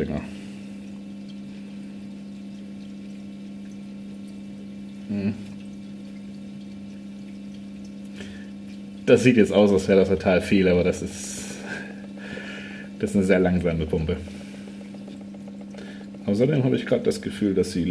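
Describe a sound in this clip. Small dosing pumps hum steadily and quietly.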